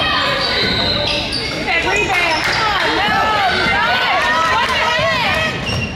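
Sneakers squeak sharply and often on a wooden court in an echoing gym.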